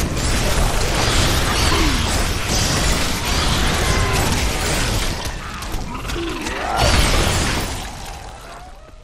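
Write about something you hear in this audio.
Magic blasts crash and explode loudly in a fierce battle.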